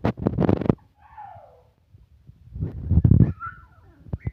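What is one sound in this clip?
A puppy whimpers and squeals up close.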